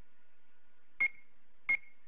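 Short electronic menu beeps sound.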